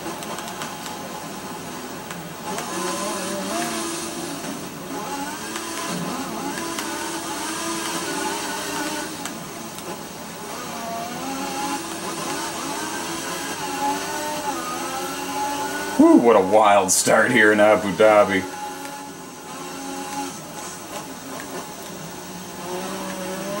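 A racing car engine whines and revs up and down through the gears.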